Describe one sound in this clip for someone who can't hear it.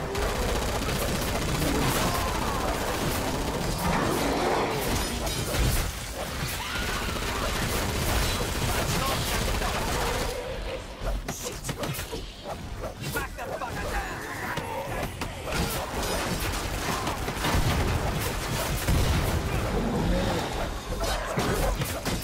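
Monsters screech and growl up close.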